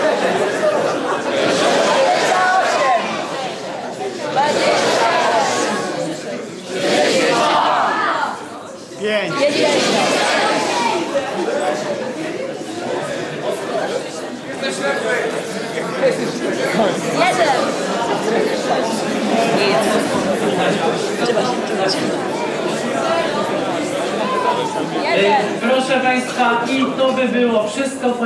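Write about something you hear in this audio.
A large audience of young people laughs loudly in an echoing hall.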